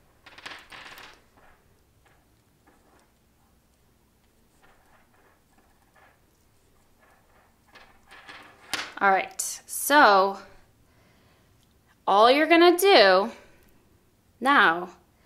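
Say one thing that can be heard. Knitting needles click and yarn rustles softly.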